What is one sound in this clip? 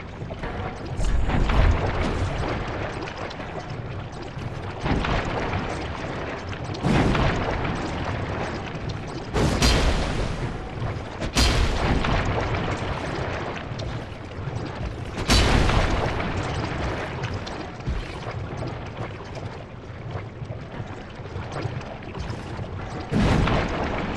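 Heavy blades swing and strike with loud thuds in short bursts.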